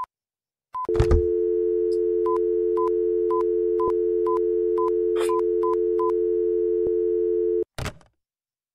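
A telephone dial tone hums steadily, then cuts off.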